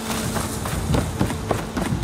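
Footsteps thud on a wooden bridge.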